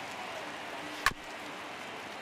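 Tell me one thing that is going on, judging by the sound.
A wooden baseball bat cracks against a ball.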